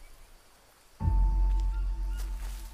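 A deep, resonant chime rings out and slowly fades.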